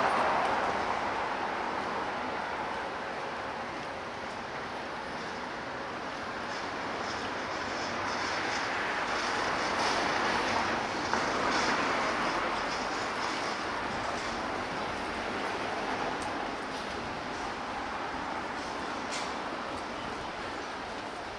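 Small wheels of a rolling suitcase rattle over paving stones.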